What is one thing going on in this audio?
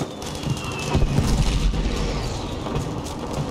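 An explosion rumbles nearby.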